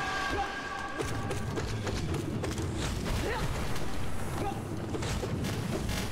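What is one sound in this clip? Heavy impacts boom and crash with low rumbling.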